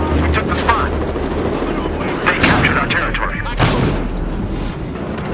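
Gunfire cracks and bursts rapidly nearby.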